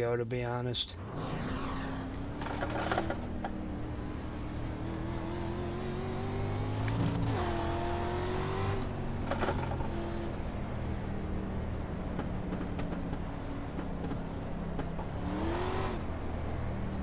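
A racing car engine drones steadily and rises in pitch as the car speeds up.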